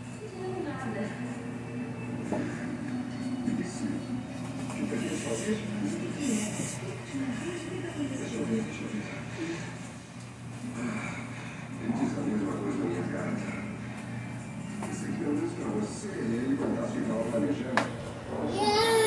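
A woman talks softly nearby.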